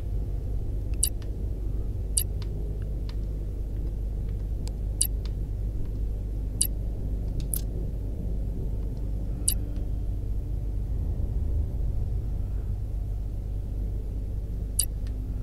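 Short, sharp electronic clicks sound now and then.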